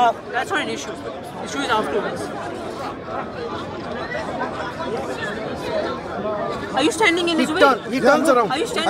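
Several men talk close by at once, outdoors.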